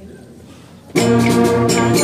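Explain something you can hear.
A school brass band suddenly starts playing loudly.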